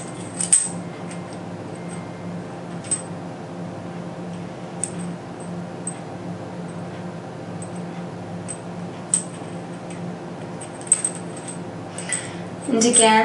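Small plastic parts click and tap as they are handled.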